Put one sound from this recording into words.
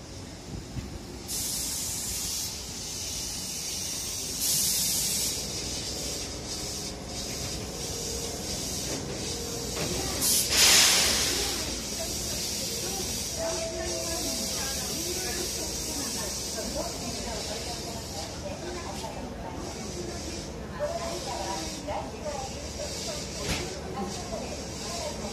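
A stopped train hums and hisses steadily beside a platform.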